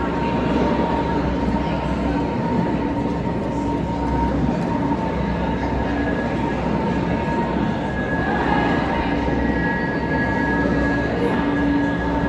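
A crowd of people murmurs and chatters indoors.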